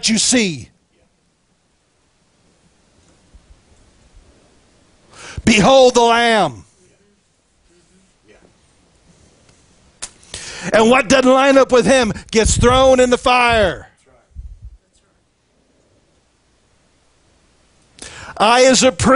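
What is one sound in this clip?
A middle-aged man speaks with animation into a microphone, with pauses between phrases.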